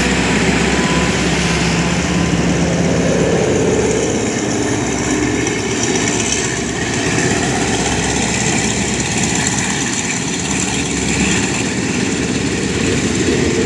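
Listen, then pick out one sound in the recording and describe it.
A diesel locomotive engine rumbles and throbs close by.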